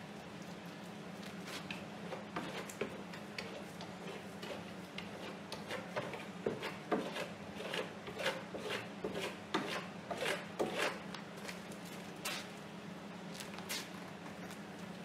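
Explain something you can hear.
A brush scrapes and dabs paint onto a canvas in quick strokes.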